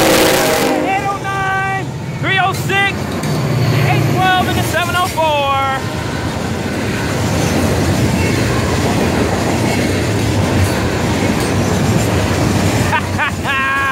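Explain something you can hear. Freight cars rumble and clatter along the rails.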